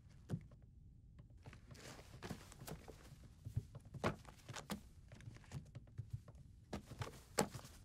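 Books knock softly as they are handled.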